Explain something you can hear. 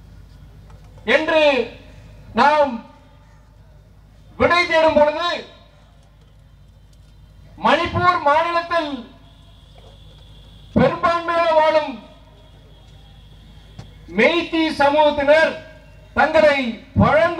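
A middle-aged man speaks forcefully into a microphone in bursts, with pauses between phrases, his voice carrying over loudspeakers outdoors.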